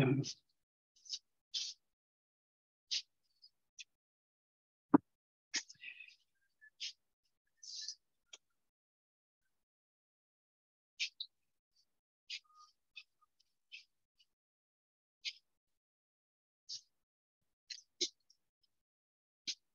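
A paintbrush brushes and scratches softly against paper.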